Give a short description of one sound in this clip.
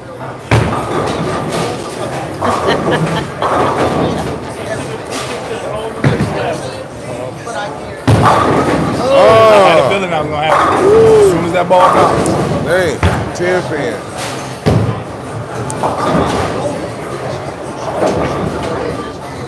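Pins clatter now and then from other lanes in a large echoing hall.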